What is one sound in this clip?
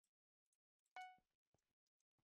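A short chime rings once.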